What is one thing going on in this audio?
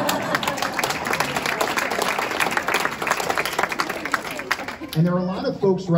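An audience applauds and cheers in a large room.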